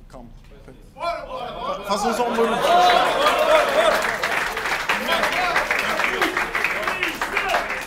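A crowd of young men shouts and cheers.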